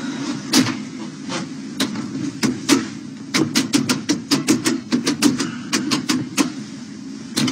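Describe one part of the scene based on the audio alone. A man presses lift buttons with quick clicks.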